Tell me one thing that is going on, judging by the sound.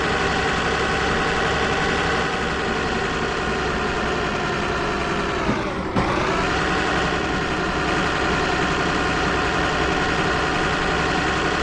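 A truck engine drones steadily, dipping briefly in pitch as it shifts gear.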